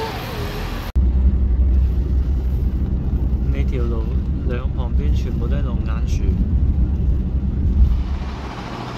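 A car hums steadily with road noise while driving.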